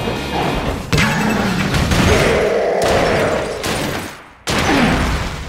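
A loud explosion booms and crackles.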